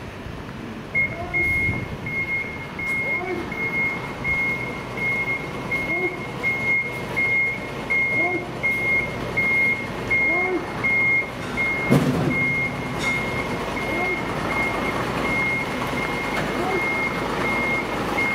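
A truck's reversing alarm beeps steadily and rapidly.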